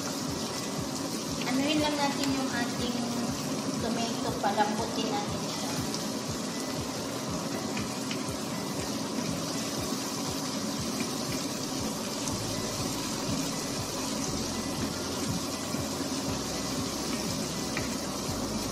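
Food sizzles and crackles steadily in a frying pan.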